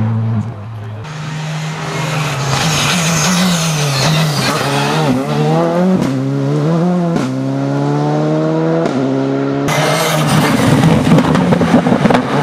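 A rally car engine roars, revving high and dropping as it shifts gears.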